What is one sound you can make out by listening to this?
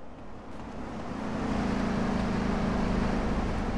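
Traffic hums nearby.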